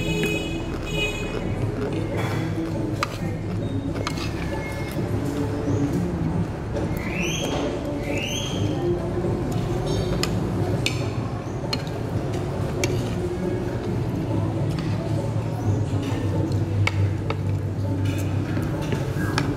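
A middle-aged woman talks calmly, close up.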